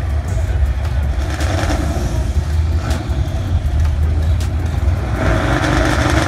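Race car engines idle with a loud, rough rumble, heard outdoors.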